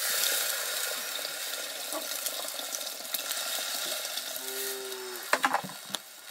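Water pours from a flask into a metal pot.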